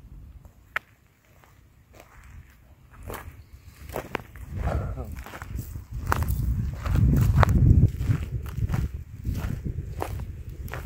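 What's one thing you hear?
Footsteps crunch on dry, brittle ground.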